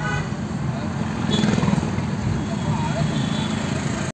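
Motorbikes and a bus rumble past in busy traffic.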